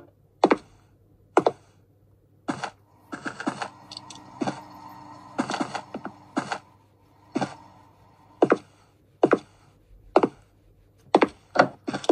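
Footsteps thud at a slow, steady walking pace.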